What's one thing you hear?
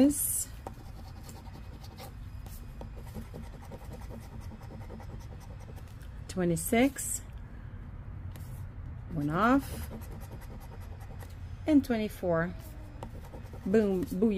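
A coin scratches at a card.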